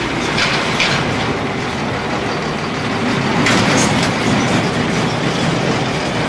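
A small locomotive engine hums and rumbles nearby.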